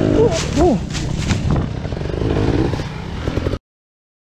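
A dirt bike thuds onto the ground.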